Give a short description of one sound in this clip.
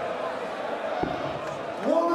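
A dart thuds into a board.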